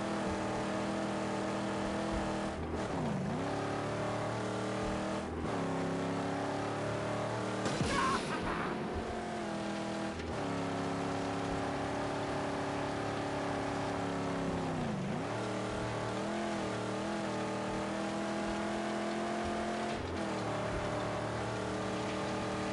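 A car engine roars steadily, dropping in pitch at each gear change.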